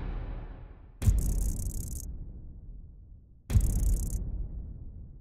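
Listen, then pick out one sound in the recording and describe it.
Short bright whooshing chimes sound twice.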